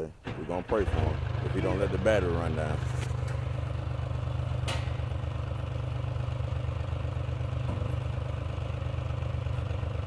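A forestry tractor's diesel engine idles with a steady low rumble.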